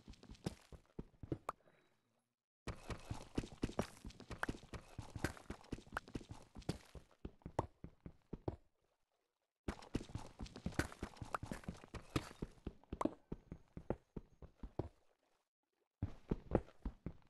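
A pickaxe chips rapidly at stone in quick bursts.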